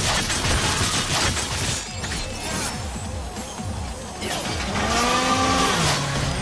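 A magic blast bursts with a crackling roar.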